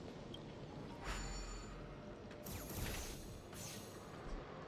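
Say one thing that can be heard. Video game energy beams zap and whoosh.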